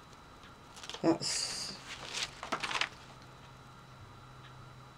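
Magazine pages rustle as they are turned.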